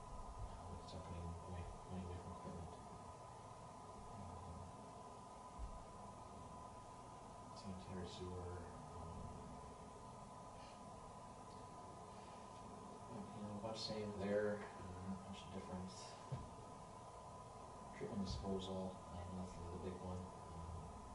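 A man speaks calmly at a distance in a room with some echo, heard through a microphone.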